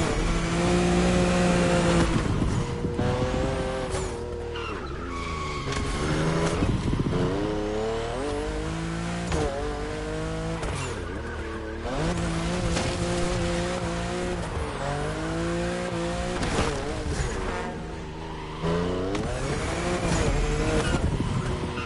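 A car engine roars loudly, revving up and down through gear changes.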